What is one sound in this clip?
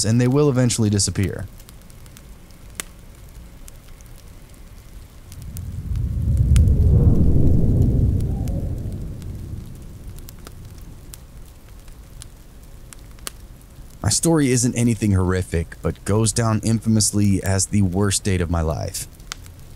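A log fire crackles and pops softly.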